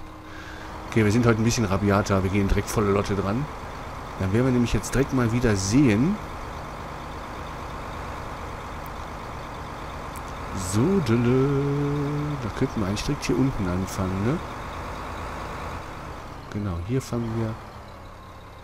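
A man talks calmly into a microphone, close up.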